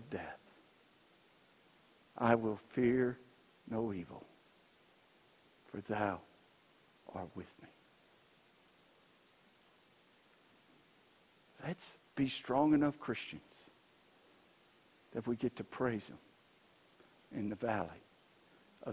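A man speaks slowly and calmly through a microphone in an echoing hall, with long pauses.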